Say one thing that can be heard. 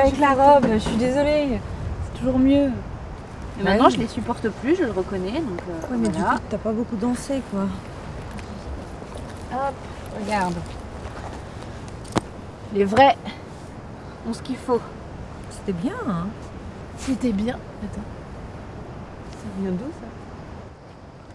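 Young women talk quietly close by.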